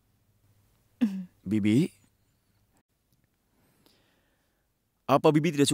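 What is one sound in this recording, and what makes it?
A young man speaks in short bursts close by.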